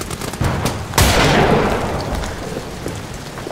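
A revolver fires a single loud shot that echoes and fades.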